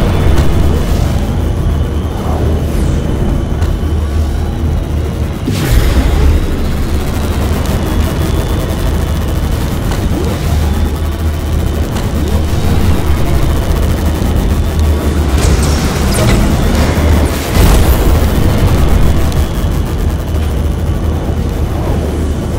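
A racing craft's engine roars steadily at high speed.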